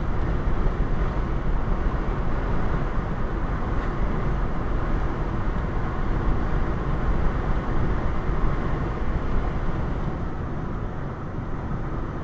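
Tyres hum and rumble steadily on a road from inside a moving car.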